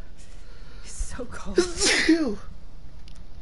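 A young woman speaks softly and weakly, close by.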